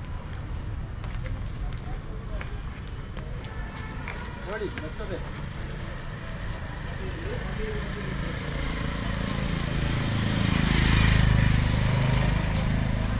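A cow's hooves clop on pavement as it walks.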